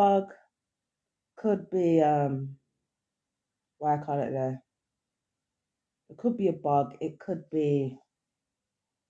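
A woman speaks close by in short, expressive bursts with pauses.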